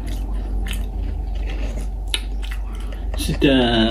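Fingers rummage among cookies in a plastic jar.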